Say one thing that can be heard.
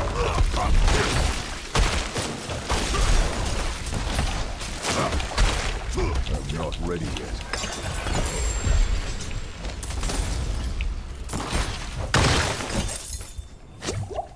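Heavy blows and crashing impacts boom in a fierce fight.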